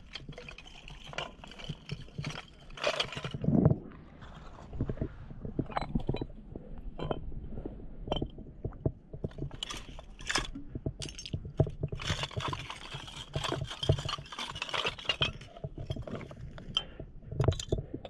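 Glass bottles clink against each other and knock on stone.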